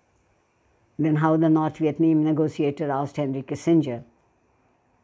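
An elderly woman reads aloud calmly, close by.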